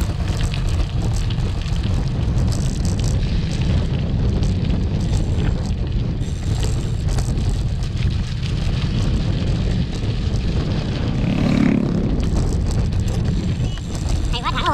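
Wind buffets the microphone with a steady low rumble.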